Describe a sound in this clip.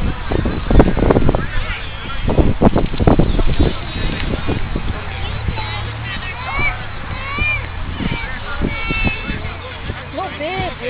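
A man speaks to a group of young children outdoors.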